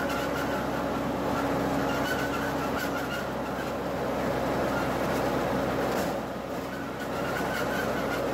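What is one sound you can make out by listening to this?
Tyres roll and swish through tall grass.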